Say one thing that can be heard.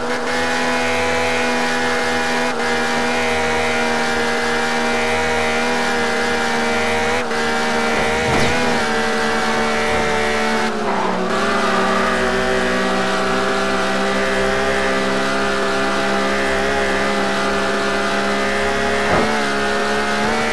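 A car engine roars steadily at high revs, with brief dips as gears shift.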